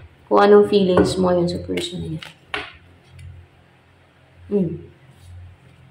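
Playing cards rustle and slide as they are handled.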